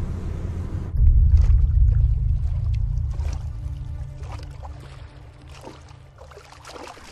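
A small boat's motor rumbles over water and slowly fades.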